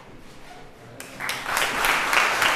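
An audience bursts into loud applause in a large room.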